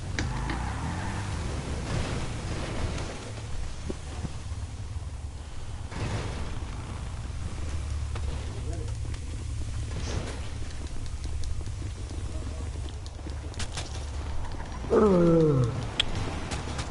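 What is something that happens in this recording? Motorbike engines rumble and idle steadily.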